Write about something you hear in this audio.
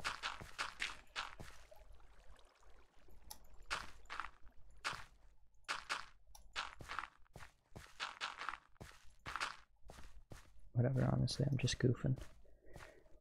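Blocks of dirt are placed one after another with soft crunching thuds.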